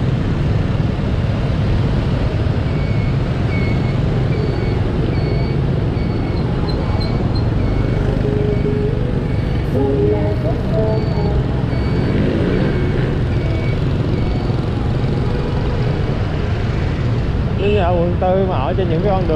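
Motorbike engines rumble steadily in busy street traffic close by.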